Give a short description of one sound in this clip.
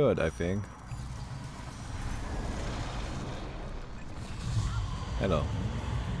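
Game sound effects crackle and whoosh as spells are cast.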